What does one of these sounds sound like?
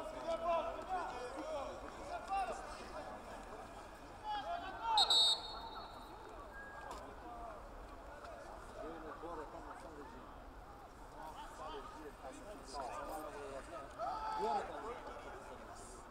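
Several men talk and call out across an open outdoor field.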